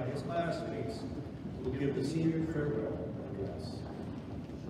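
A man announces names over a loudspeaker in a large hall.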